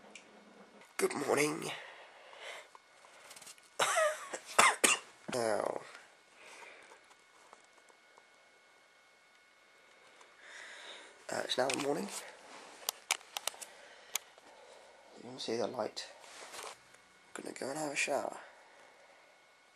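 A young man talks quietly and close by, in short bursts.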